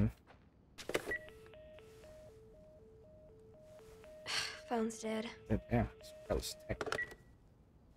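A phone gives a repeating beeping tone.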